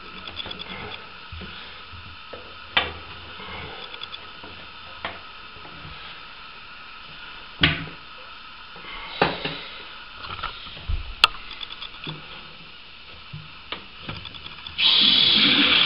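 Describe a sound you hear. Metal fittings click and knock as a hose is screwed onto a valve by hand.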